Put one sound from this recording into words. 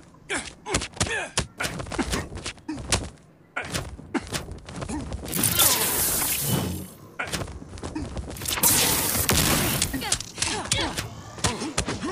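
Energy blasts whoosh and crackle loudly.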